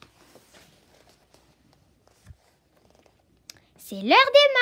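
Paper rustles softly as hands hold a book.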